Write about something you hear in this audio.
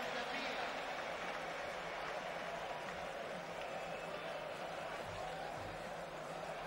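A crowd murmurs and cheers steadily in a large echoing arena.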